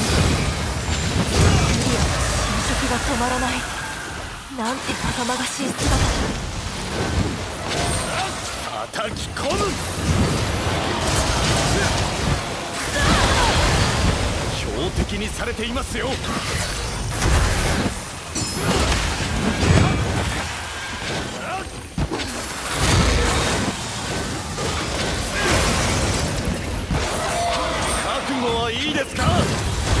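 Weapon blows strike a monster with sharp metallic hits.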